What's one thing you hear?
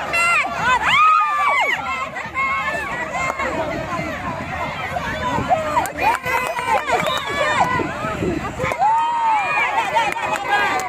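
Adults cheer and call out nearby.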